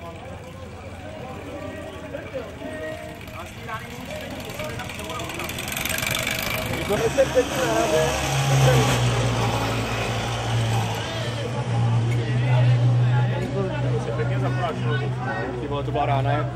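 A crowd of people talks outdoors in the background.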